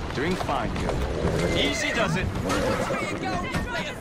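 Carriage wheels rumble over cobblestones.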